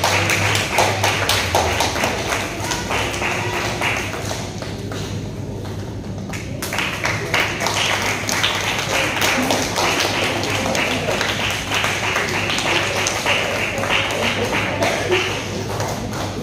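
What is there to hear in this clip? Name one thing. A woman speaks through a microphone, heard over loudspeakers in a hall.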